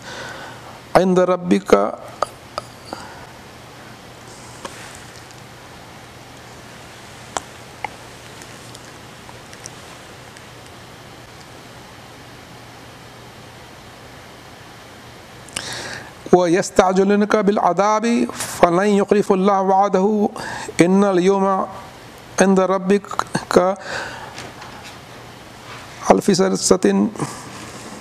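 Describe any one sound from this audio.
A man speaks slowly and calmly into a microphone, reading out with long pauses.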